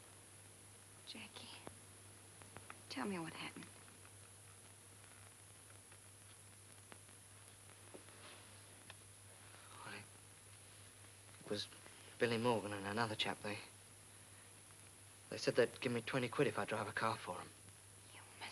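A young man speaks quietly and haltingly, close by.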